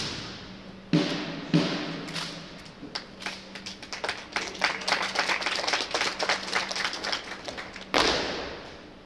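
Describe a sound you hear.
Many boots march in step in a large echoing hall.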